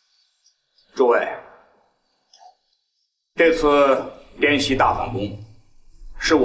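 A man speaks firmly and loudly.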